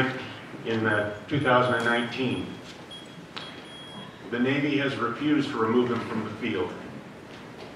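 An elderly man speaks calmly into a microphone over a loudspeaker in an echoing hall.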